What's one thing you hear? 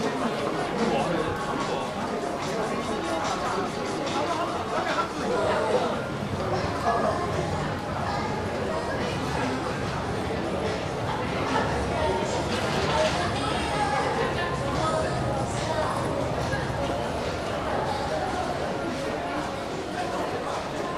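A crowd murmurs with distant chatter in an echoing hall.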